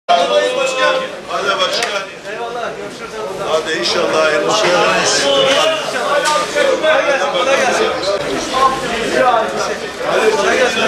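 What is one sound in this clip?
Several men talk to each other close by.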